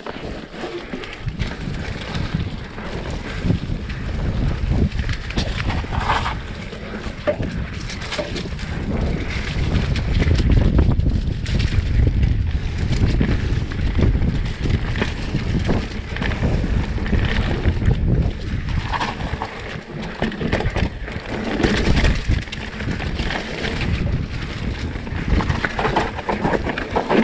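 Wind rumbles heavily past the rider.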